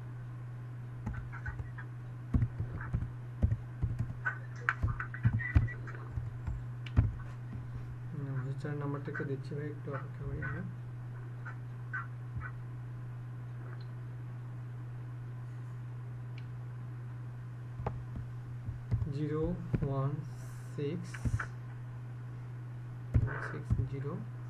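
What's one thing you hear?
Keys clack on a computer keyboard in short bursts.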